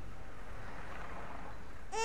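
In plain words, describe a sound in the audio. A pram's wheels roll past on paving.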